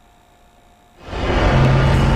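A loud rushing burst of magic swells up.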